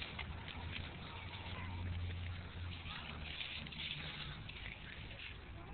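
Dry leaves crinkle in a small hand.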